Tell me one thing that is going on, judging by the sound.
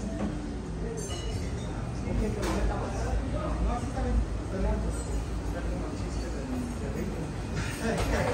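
Dishes and utensils clatter now and then.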